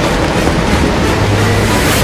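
Water pours down and splashes into a pool.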